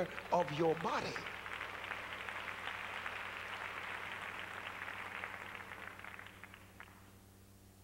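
An audience applauds.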